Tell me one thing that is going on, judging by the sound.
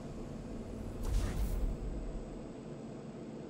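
A deep magical rumble swells and quickly fades.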